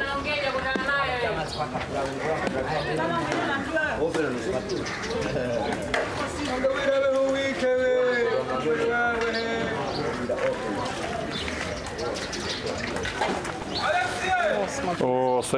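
A woman talks and asks questions close by.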